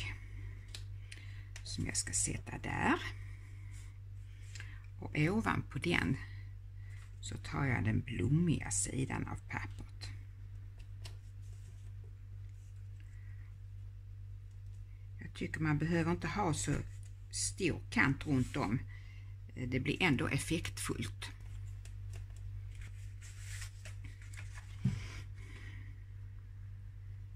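Sheets of paper rustle and slide on a table.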